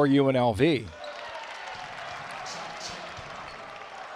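A crowd cheers and applauds in a large echoing arena.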